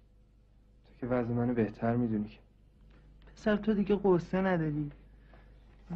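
A young man speaks quietly and sadly, close by.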